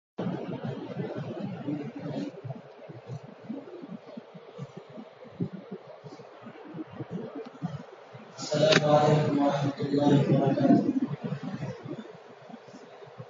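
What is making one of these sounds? A man speaks with emphasis into a microphone, heard over loudspeakers outdoors.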